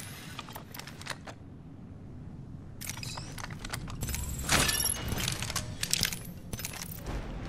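Short game menu clicks tick repeatedly.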